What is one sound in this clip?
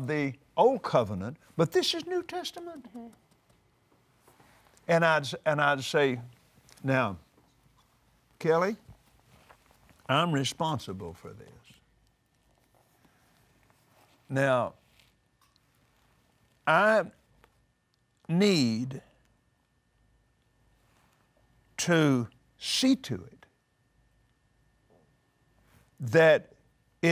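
An elderly man speaks calmly and with emphasis into a microphone, pausing often.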